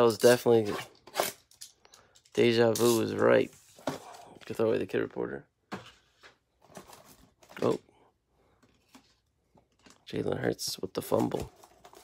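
A cardboard box rustles and taps as it is handled.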